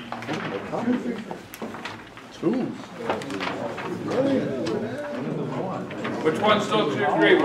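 An older man speaks calmly and clearly, close by.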